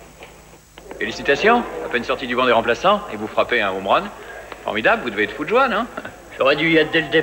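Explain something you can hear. A man talks with animation, close by.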